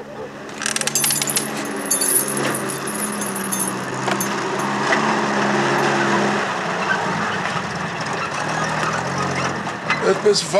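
A truck engine labours and revs nearby.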